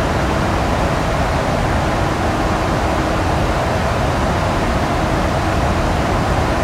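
Jet engines roar steadily in flight, heard from inside the cockpit.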